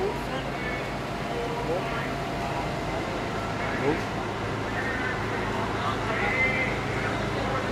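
People chatter in the distance outdoors.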